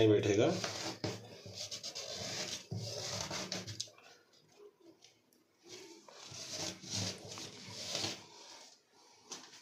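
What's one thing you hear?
A cloth rubs and squeaks against a metal sink drain.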